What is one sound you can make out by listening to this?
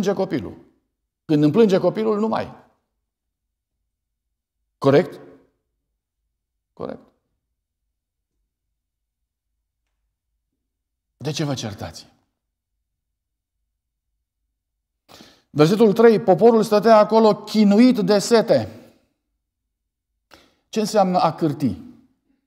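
A man speaks calmly into a microphone, heard over a loudspeaker in an echoing hall, with long pauses.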